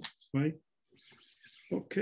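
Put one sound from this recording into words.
Fabric rustles softly as it is smoothed over a hoop.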